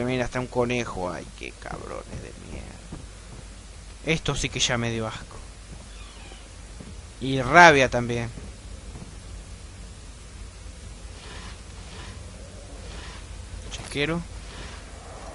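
A man talks into a microphone in bursts, with animation.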